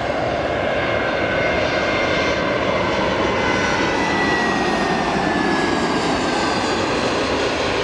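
A jet airliner roars loudly overhead with a whining engine tone that slowly falls in pitch.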